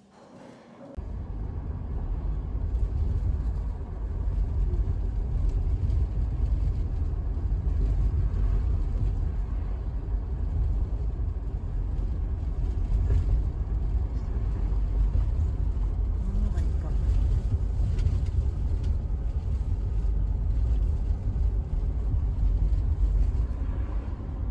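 A car's engine and tyres rumble steadily from inside the car as it drives along a road.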